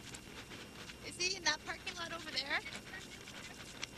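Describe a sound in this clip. A woman laughs and speaks softly nearby.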